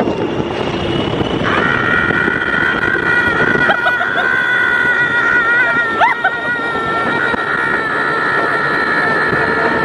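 A young woman screams and laughs with excitement close by.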